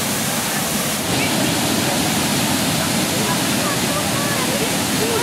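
A river's water rushes and laps.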